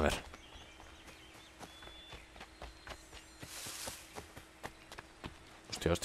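Footsteps run through rustling grass.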